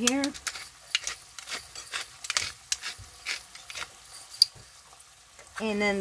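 Salt grains patter lightly into a pan of beans.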